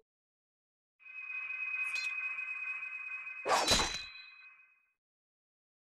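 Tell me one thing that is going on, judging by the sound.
A metal blade rings with a shimmering tone.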